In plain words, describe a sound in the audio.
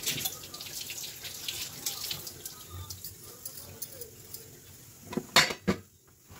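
Metal pots clink and clatter against each other.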